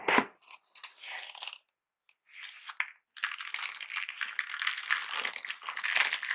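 Gloved hands rub and crinkle against cardboard.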